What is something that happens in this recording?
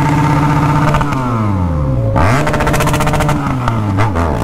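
A motorcycle engine drops in pitch as the rider slows down.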